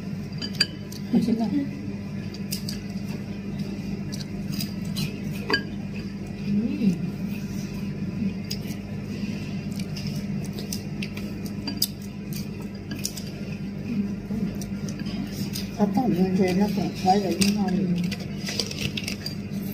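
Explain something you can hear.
Spoons and chopsticks clink against bowls.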